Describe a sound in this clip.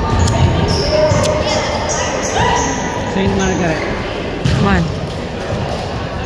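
Sneakers squeak on a hardwood floor.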